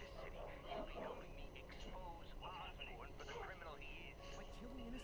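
A young man talks casually into a microphone.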